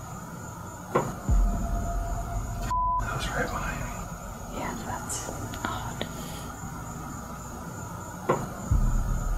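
A knock sounds on a door.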